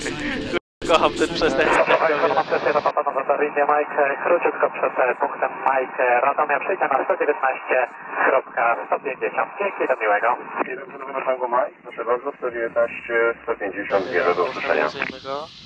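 A young man talks over a headset intercom.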